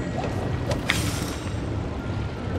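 An electric bolt crackles and zaps.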